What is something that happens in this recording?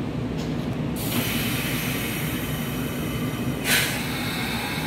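A train's air brakes release with a loud hiss.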